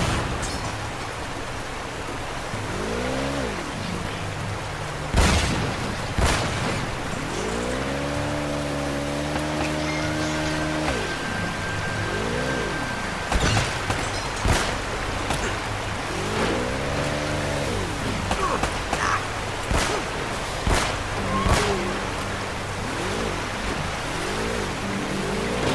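Rushing water splashes and roars steadily.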